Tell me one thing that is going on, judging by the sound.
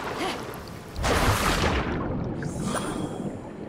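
A burst of rushing water surges loudly.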